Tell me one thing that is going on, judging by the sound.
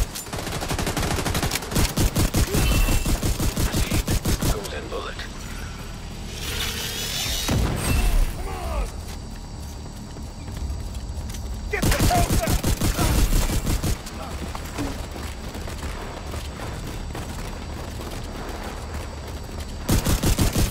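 Rapid gunfire bursts loudly in quick volleys.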